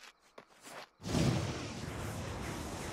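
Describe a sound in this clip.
Electricity crackles and hisses loudly.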